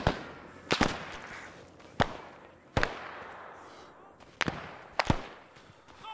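Rifle shots crack one at a time and echo across open ground.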